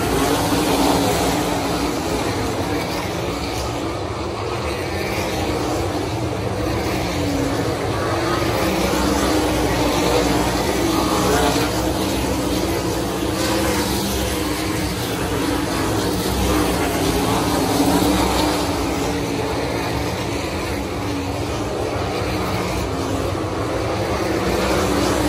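Racing car engines roar loudly and steadily.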